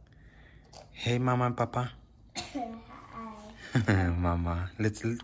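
A young child talks with excitement, close by.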